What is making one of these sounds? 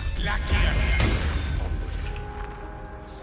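A magical beam blasts with a loud rushing whoosh.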